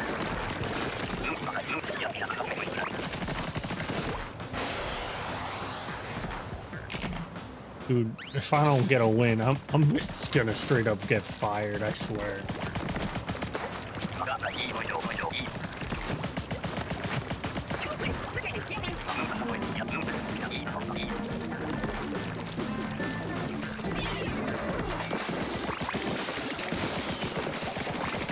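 Ink guns squirt and splatter in quick bursts.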